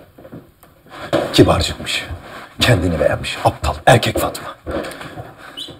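A man shouts angrily indoors.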